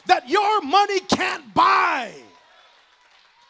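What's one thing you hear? A man speaks emphatically through a microphone in a large echoing hall.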